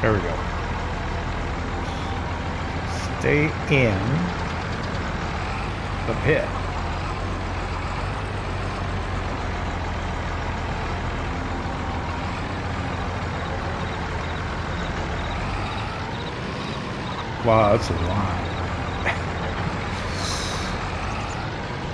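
A harvester engine rumbles steadily.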